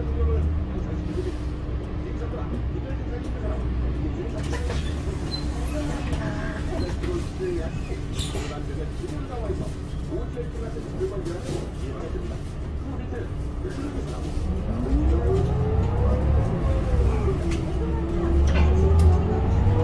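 A bus engine rumbles low and steady from inside the cabin.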